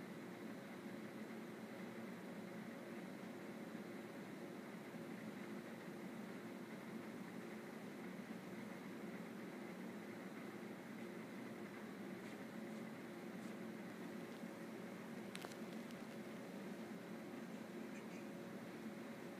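Shoes shuffle softly on a hard floor.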